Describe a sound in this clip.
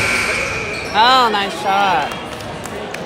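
A referee blows a whistle sharply twice.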